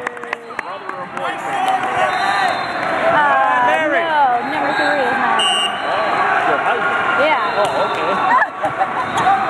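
A crowd of young men and spectators chatter and cheer loudly in a large echoing hall.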